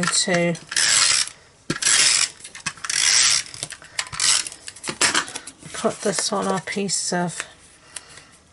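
Paper rustles and scrapes as it is handled.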